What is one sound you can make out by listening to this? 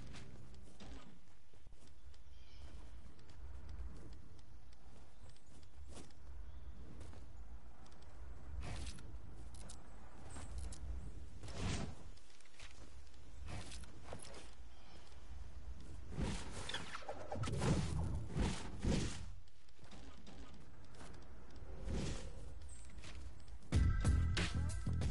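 Building pieces snap into place with quick clicks and thuds.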